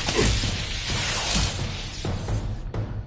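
A magic blast whooshes and crackles loudly.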